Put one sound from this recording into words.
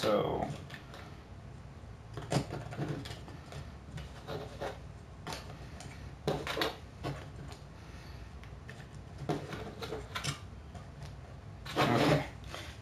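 Wooden pieces clack and tap against each other on a table.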